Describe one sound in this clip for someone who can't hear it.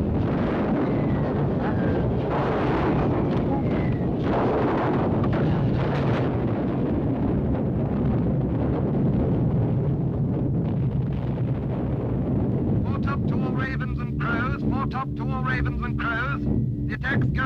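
Bombs burst far below in a deep, continuous rumble.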